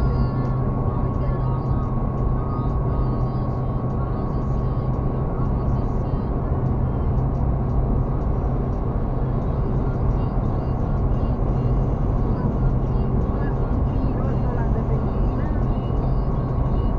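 A car engine hums steadily from inside the car at highway speed.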